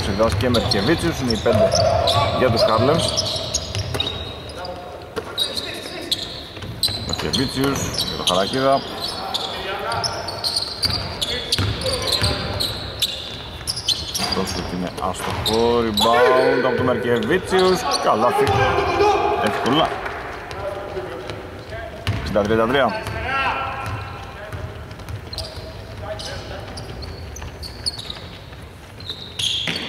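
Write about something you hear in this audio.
Sneakers squeak sharply on a hard court in an echoing hall.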